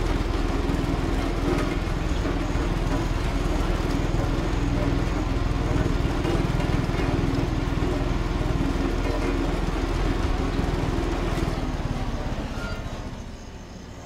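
A road roller's diesel engine rumbles steadily.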